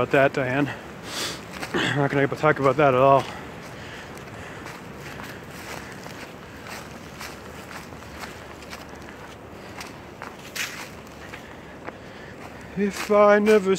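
Footsteps crunch on dry leaves.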